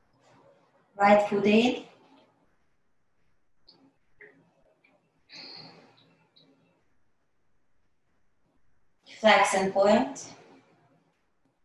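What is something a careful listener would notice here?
A woman speaks in short instructing phrases.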